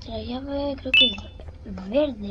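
A short electronic chime sounds as an item is picked up.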